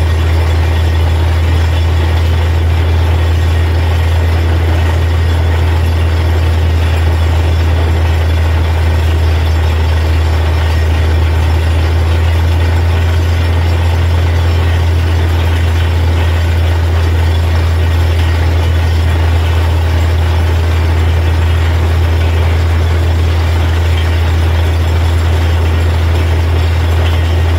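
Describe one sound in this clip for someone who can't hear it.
A drill rig grinds and rumbles as it bores.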